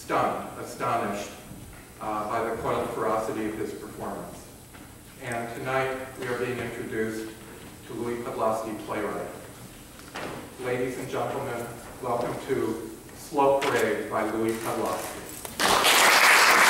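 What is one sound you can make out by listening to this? A man speaks calmly through a microphone and loudspeaker in a large hall.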